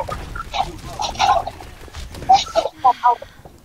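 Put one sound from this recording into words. Game gunfire and blasts crackle in short bursts.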